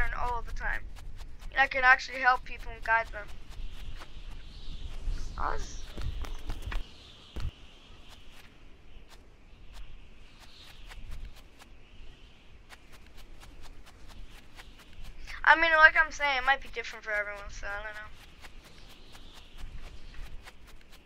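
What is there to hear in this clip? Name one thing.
Footsteps patter softly on sand.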